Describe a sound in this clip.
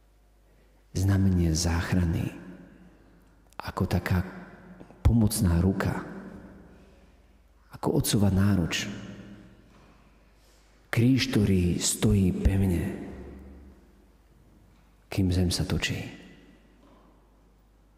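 A man speaks calmly through a microphone in phrases with pauses, echoing in a large hall.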